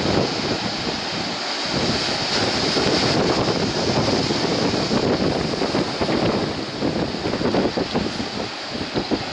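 Waves break and wash onto a beach with a steady roar.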